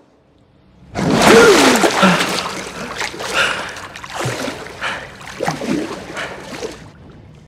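A man groans and gasps in pain close by.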